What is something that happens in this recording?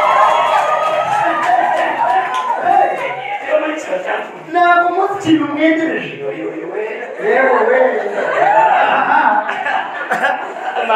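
A second man answers through a microphone and loudspeakers.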